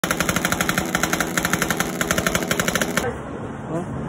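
A motorcycle engine revs loudly.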